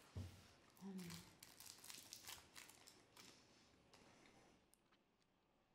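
Paper crinkles softly close by.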